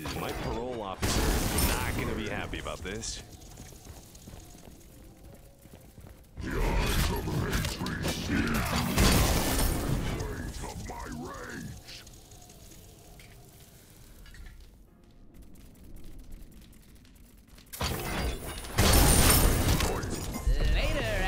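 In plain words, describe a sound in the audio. Fiery blasts boom and crackle in bursts.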